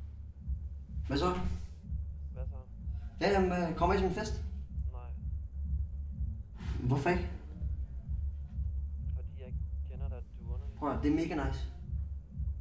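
A man speaks quietly, in short phrases with pauses.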